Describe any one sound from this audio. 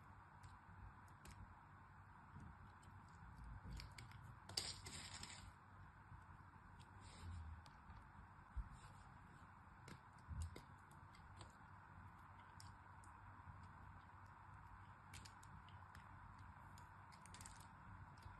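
A small blade scrapes and crunches through soft foam.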